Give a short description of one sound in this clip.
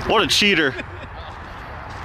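A man laughs nearby, outdoors.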